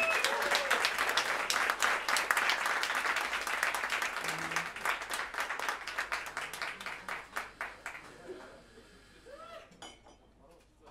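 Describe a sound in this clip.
A jazz band plays live.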